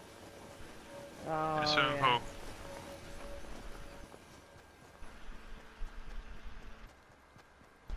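Footsteps run quickly across grass.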